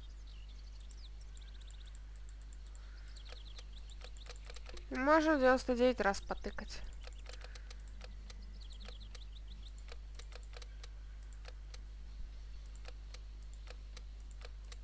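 Keypad buttons beep softly as they are pressed.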